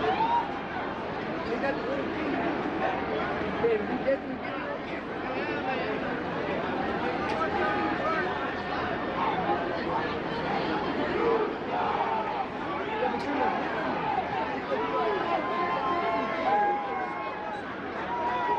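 Nearby fans talk and call out with animation.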